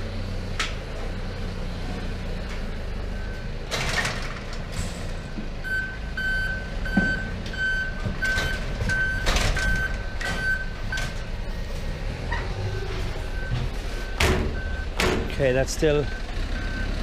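Gloved hands knock and clank against metal bars.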